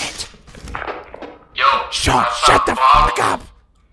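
A walkie-talkie crackles with static.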